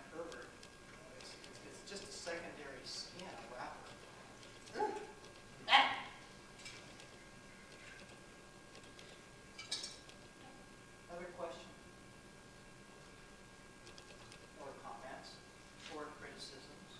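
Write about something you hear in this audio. A man speaks calmly at a distance in an echoing room.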